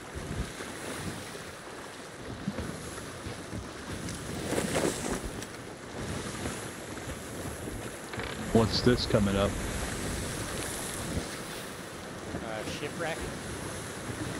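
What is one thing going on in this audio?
Waves wash steadily against a wooden ship's hull.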